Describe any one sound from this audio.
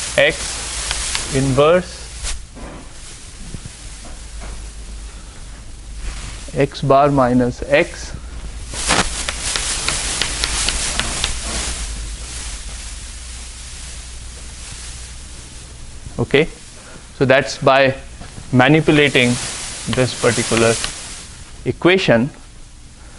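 A man lectures calmly in a large room, with a slight echo.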